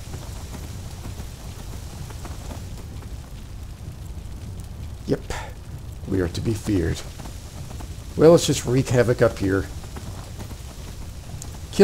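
Horse hooves thud on dirt at a gallop.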